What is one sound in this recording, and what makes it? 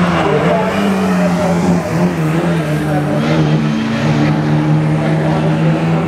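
Car tyres squeal while sliding on tarmac.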